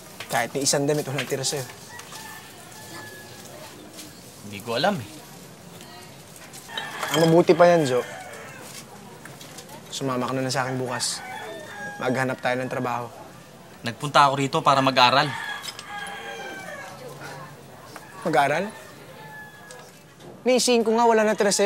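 A young man speaks casually nearby.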